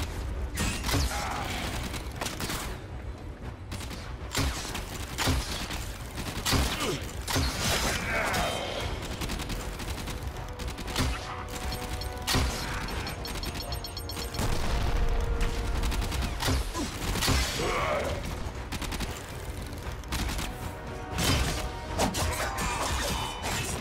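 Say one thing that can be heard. Arrows strike with sharp energetic bursts.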